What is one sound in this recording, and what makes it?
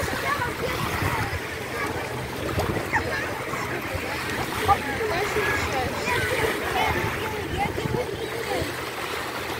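Small waves lap and splash at the shore.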